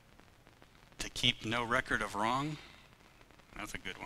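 A man speaks calmly into a microphone in a large echoing room.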